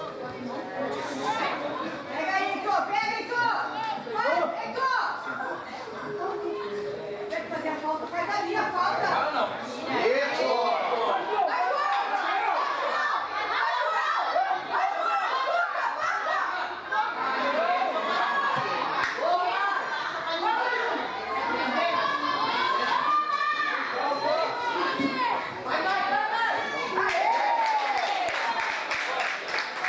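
Teenage boys shout to each other across an open football pitch.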